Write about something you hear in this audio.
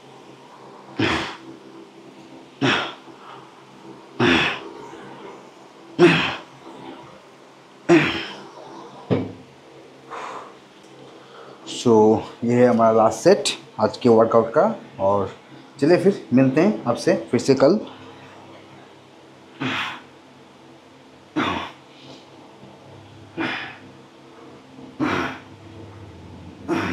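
A man exhales sharply with each pull.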